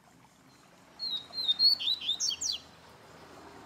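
A caged bird sings a short burst of quick, high chirps and trills.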